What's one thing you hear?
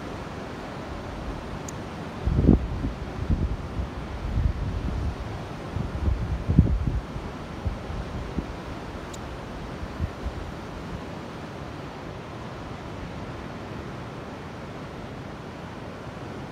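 Sea waves wash steadily against the shore nearby.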